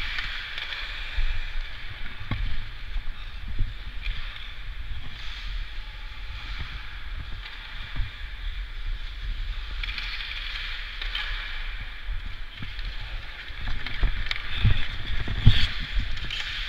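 Ice skate blades scrape and hiss across the ice.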